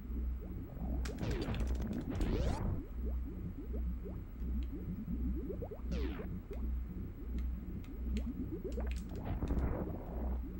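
Retro video game music plays with a pulsing beat.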